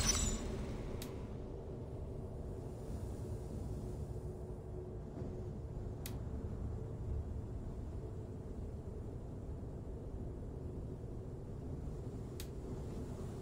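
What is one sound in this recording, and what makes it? A short soft click sounds a few times.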